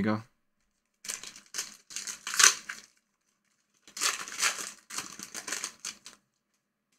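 A foil card wrapper crinkles and tears in hands.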